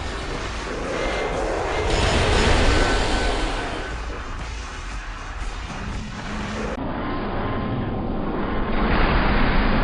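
Swords slash and clash in quick, repeated strikes.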